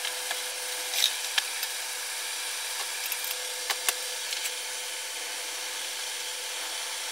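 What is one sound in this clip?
A wood block knocks against metal as it is fitted.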